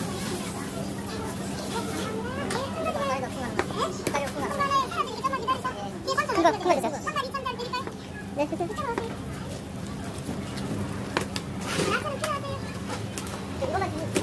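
A knife chops braised pork trotters on a plastic cutting board.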